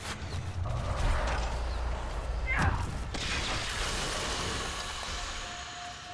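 Weapons swoosh and strike in a fight.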